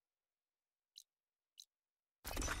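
Short menu clicks sound.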